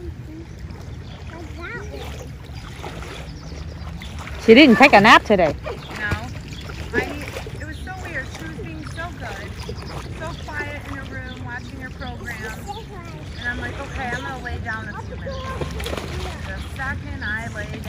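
Water splashes as children swim.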